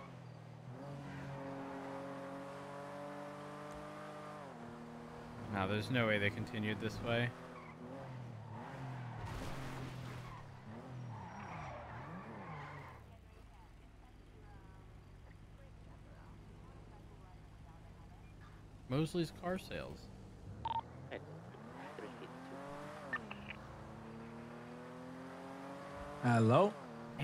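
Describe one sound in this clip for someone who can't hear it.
A car engine drones and revs as the car speeds up and slows down.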